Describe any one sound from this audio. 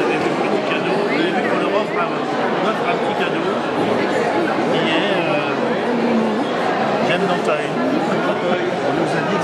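A middle-aged man talks with diners close by.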